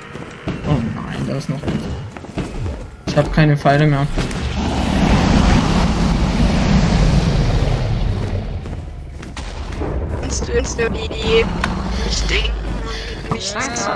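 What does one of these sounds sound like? A dragon roars and growls.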